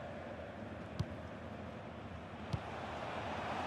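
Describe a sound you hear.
A football is kicked with a short dull thud.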